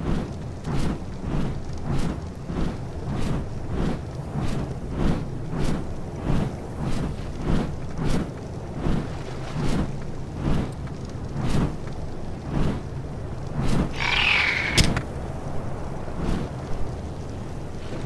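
Large leathery wings beat in a steady, rapid rhythm.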